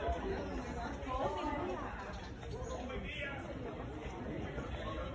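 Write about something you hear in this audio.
People talk nearby in a crowd.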